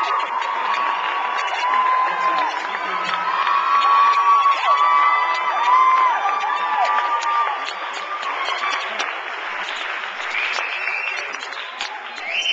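A group of young men sing together in harmony in a large hall.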